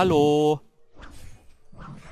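A fiery magic blast whooshes and crackles.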